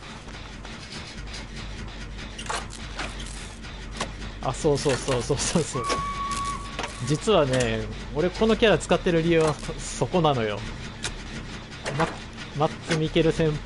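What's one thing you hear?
A machine clanks and rattles as it is worked on.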